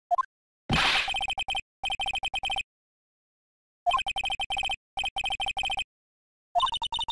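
Rapid high electronic blips tick in quick bursts.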